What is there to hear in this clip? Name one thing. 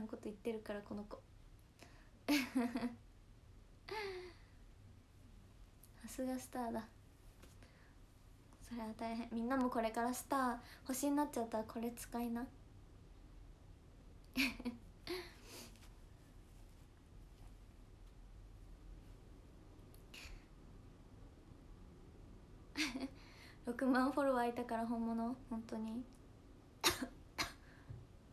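A young woman talks casually and close to a microphone, with pauses.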